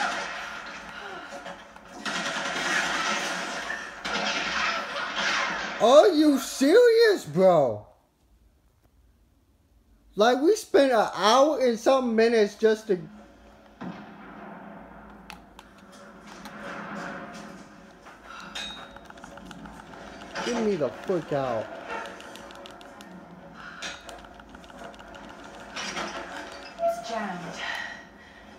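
A television plays game music and sound effects through its speaker.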